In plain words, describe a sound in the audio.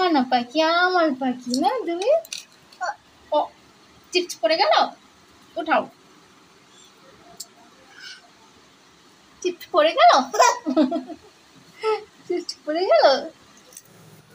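A woman speaks playfully and sings close by.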